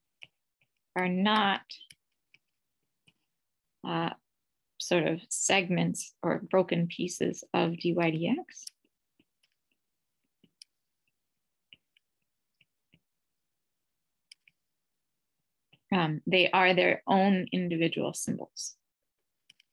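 A woman speaks calmly and explains into a close microphone, pausing often.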